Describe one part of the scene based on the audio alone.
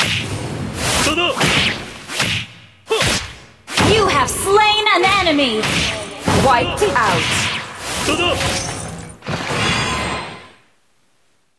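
Game sword strikes ring out sharply.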